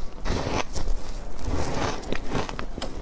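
A young woman bites into crunchy food close to a microphone.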